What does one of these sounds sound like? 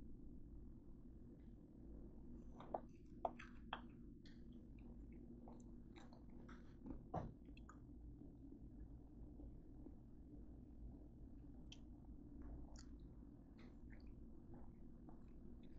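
An oven fan hums steadily.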